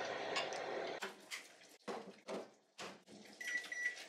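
An oven door is opened and shut with a thud.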